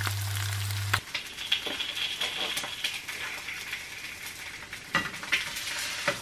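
A fork scrapes and taps against a plate.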